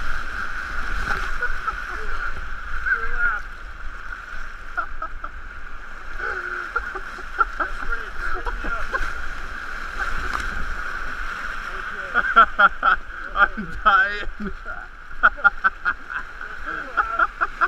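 Whitewater rushes and churns loudly.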